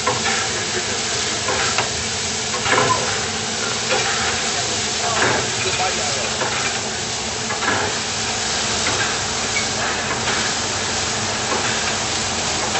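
A steam locomotive hisses steadily as steam escapes.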